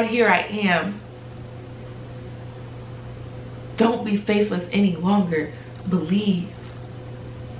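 A young woman speaks calmly and close by, with pauses.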